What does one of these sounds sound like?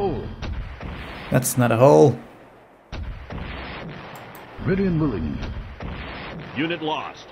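A small cannon fires shot after shot.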